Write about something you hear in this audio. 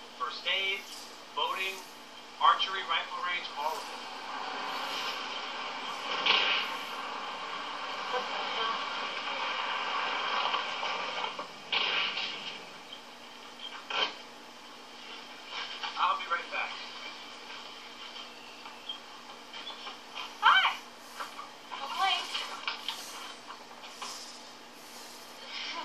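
A man speaks, heard through a television loudspeaker.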